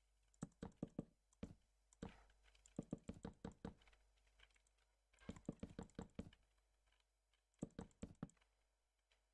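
Wooden blocks knock softly in quick bursts as they are placed.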